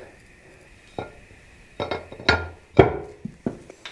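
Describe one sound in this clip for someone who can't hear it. A metal cover plate clanks as it is set down onto a metal housing.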